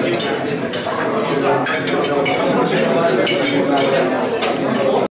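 A crowd of men and women chatter loudly in an echoing room.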